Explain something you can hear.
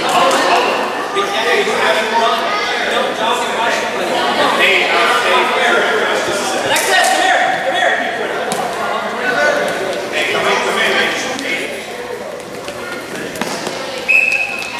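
Children and parents shout and cheer in a large echoing hall.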